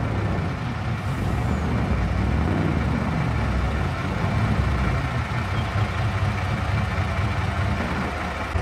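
A heavy truck engine rumbles steadily while driving.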